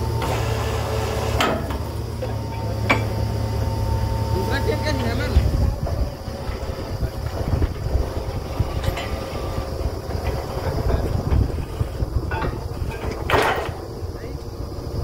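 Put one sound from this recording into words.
A drilling rig engine rumbles steadily nearby.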